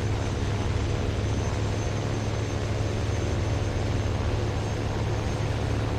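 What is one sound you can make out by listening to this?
Wind rushes past a plane in flight.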